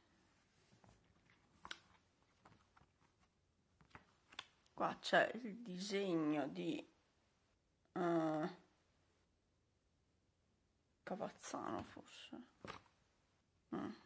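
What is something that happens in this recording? A stiff paper card rustles and taps softly.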